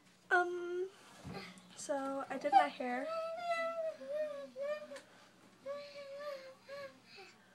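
A young woman speaks close up with animation, her voice high and whiny.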